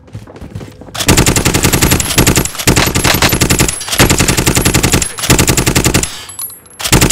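A rifle fires in rapid bursts, close by.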